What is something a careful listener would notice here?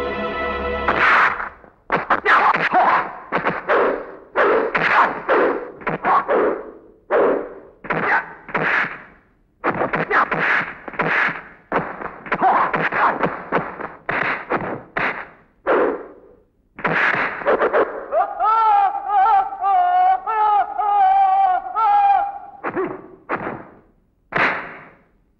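Men shout and grunt loudly while fighting.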